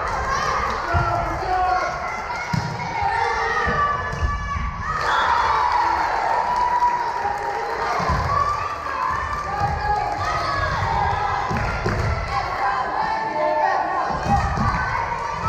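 A volleyball thuds off hands and arms.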